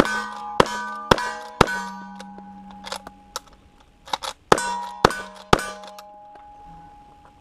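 Metal targets ring after being hit.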